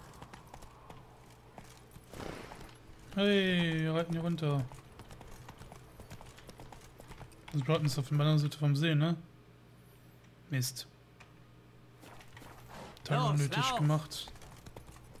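Horse hooves clop on rough ground.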